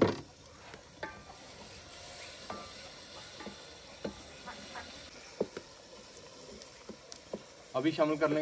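A metal ladle clinks and scrapes against a cooking pot.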